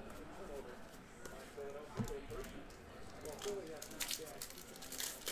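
Trading cards rustle and slide against each other as they are shuffled.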